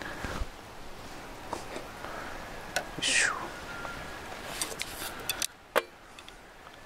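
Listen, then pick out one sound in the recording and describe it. A metal ladle clinks against a metal bowl.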